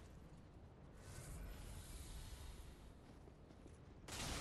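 A fireball bursts into flame with a rushing whoosh.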